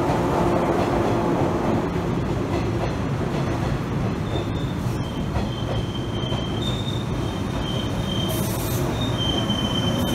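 A train rumbles slowly into a station, its wheels rolling on the rails.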